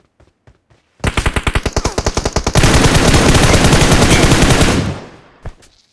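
Rapid gunfire rattles loudly in a long burst.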